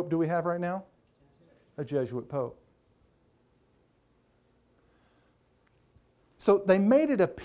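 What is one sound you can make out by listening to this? A middle-aged man speaks with emphasis through a microphone, pausing between phrases.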